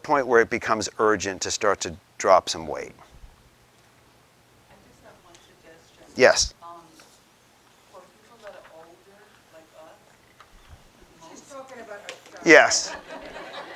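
A middle-aged man speaks clearly, pausing between phrases.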